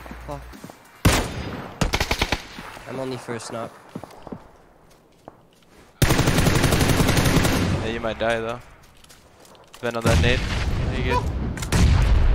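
An assault rifle in a video game fires in rapid bursts.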